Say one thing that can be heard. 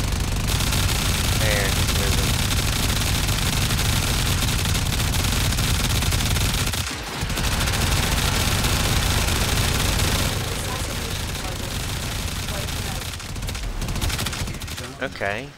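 A flamethrower roars in a steady, crackling blast.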